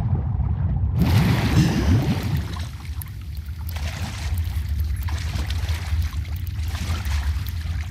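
A person wades through water with sloshing splashes.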